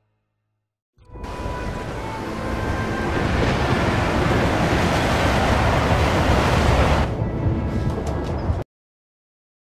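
Wind howls outside.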